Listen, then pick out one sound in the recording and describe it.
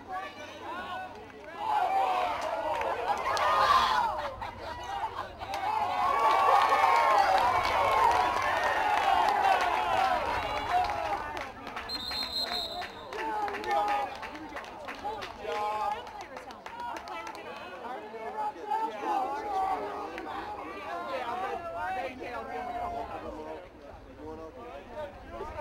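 Young men shout and call out on an open field.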